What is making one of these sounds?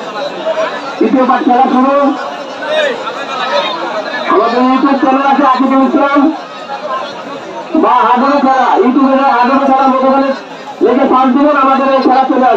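A young man chants rhythmically and loudly, in short repeated bursts.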